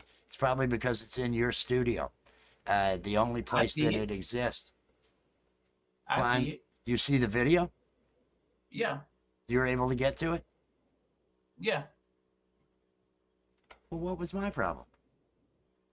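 An older man talks with animation into a close microphone, in bursts with pauses.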